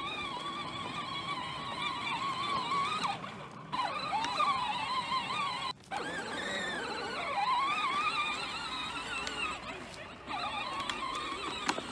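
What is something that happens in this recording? A small electric motor whines as a toy tractor drives across grass.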